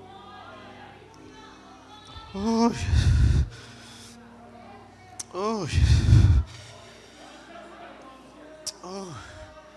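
A man preaches loudly and with passion into a microphone, his voice ringing through a large echoing hall.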